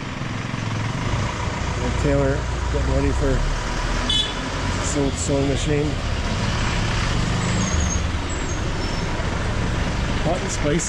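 A motorbike engine hums as it passes nearby on the street.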